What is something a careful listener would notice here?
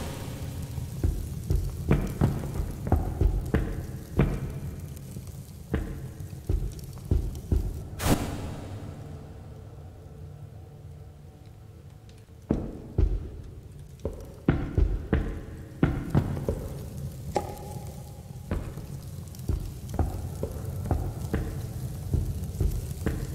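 Footsteps thud on stone at a steady walking pace.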